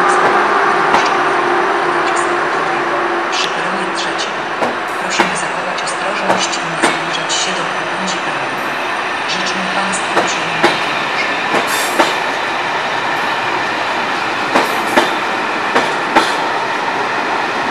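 A passenger train rumbles steadily past along the platform.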